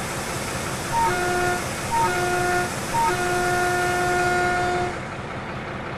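A locomotive horn sounds in three blasts, the last one long.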